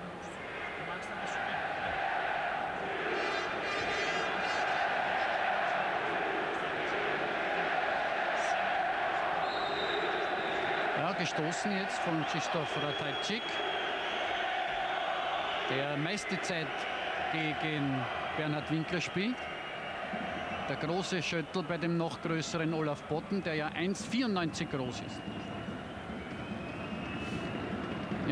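A large stadium crowd chants and cheers steadily in the distance.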